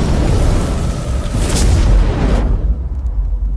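A fiery explosion roars with a deep rumble.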